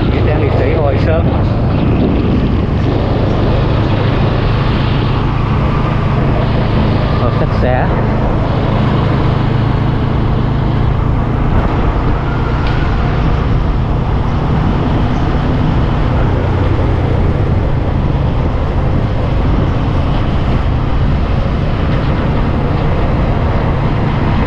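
A motorbike engine hums steadily.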